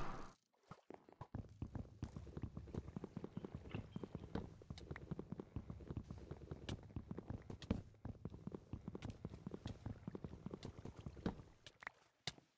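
Wooden blocks are chipped away with rapid, soft knocks.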